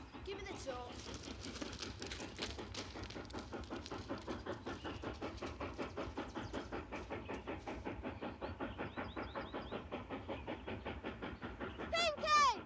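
A steam train chugs steadily in the distance.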